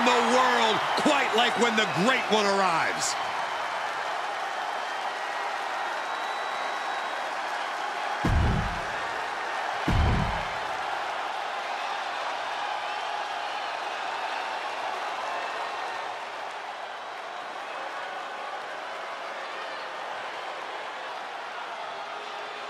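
A large crowd cheers steadily in a big echoing arena.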